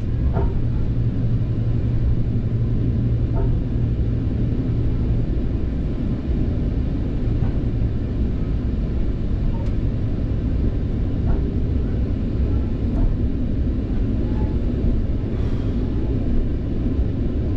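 A train carriage rattles and creaks softly.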